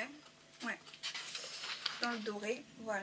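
Sheets of paper rustle and flap as they are handled.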